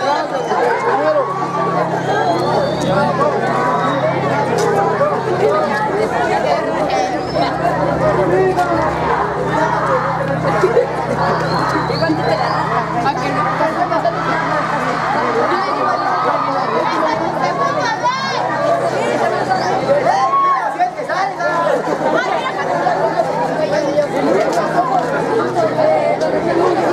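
A large crowd of young people chatters close by outdoors.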